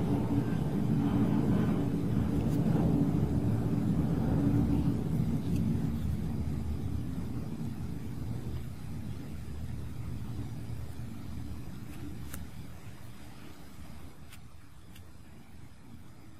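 A crochet hook softly rasps through yarn.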